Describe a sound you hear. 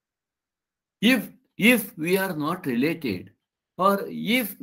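An elderly man speaks calmly through a computer microphone.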